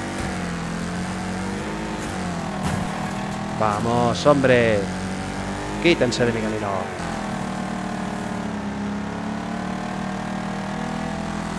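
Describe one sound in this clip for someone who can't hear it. Car engines roar steadily at high revs.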